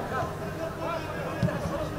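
A ball is kicked with a dull thud outdoors.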